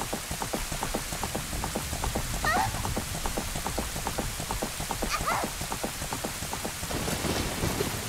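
Horse hooves gallop fast and steadily.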